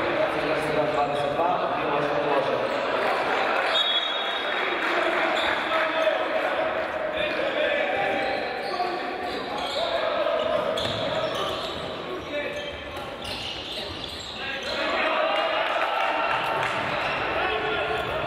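Sneakers squeak on a hard court in a large echoing hall.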